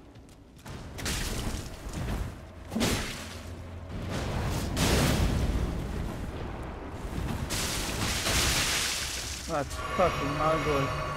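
A sword slashes and clangs against a fleshy monster.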